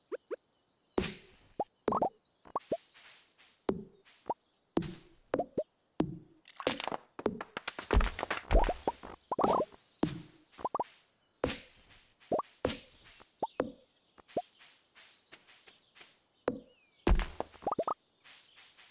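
An axe chops at wood with sharp, repeated knocks.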